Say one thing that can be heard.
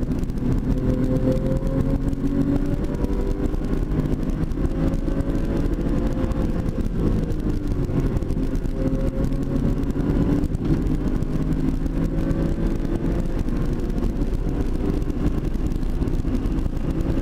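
Tyres rumble and hum on the track.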